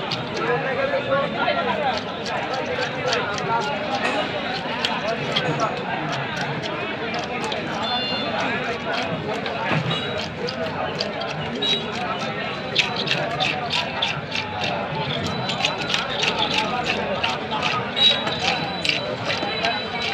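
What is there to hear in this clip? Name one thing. A busy crowd of men chatters in the background outdoors.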